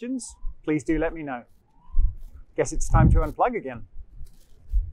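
A middle-aged man speaks calmly and clearly into a close microphone, outdoors.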